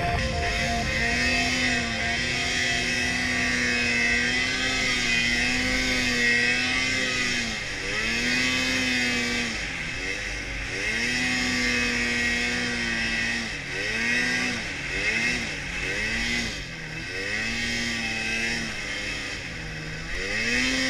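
Snow hisses and sprays under a snowmobile's track.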